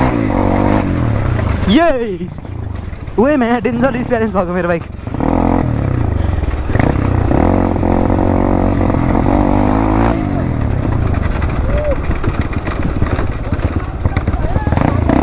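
A dirt bike engine runs close by, rising and falling as it rides.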